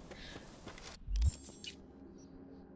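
A menu opens with a soft electronic click.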